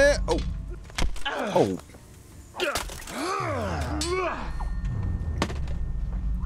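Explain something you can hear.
Steel swords clang together sharply.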